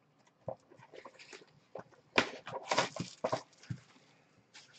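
Plastic wrapping crinkles as it is torn off a box.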